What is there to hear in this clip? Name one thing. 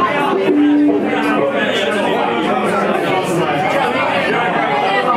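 A crowd chatters in a busy, echoing room.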